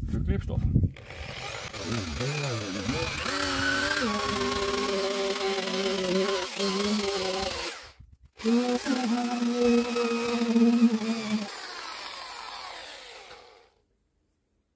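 A power drill whines loudly, stopping briefly and starting again.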